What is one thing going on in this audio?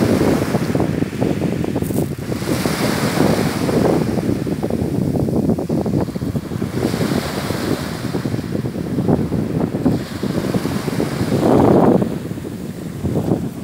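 Small waves break and wash over a pebble beach.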